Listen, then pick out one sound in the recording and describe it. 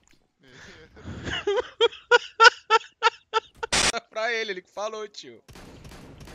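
A young man laughs loudly and excitedly through a microphone.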